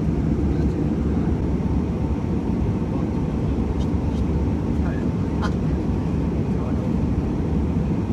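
A young man speaks quietly close by.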